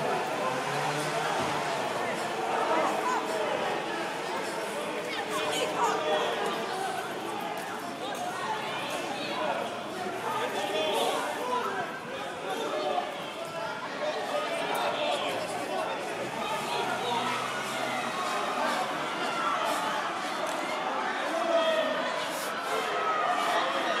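A crowd of people shouts and chatters outdoors.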